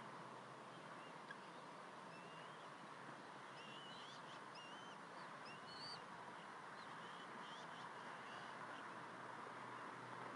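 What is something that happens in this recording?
Eaglets chirp and peep in short high calls.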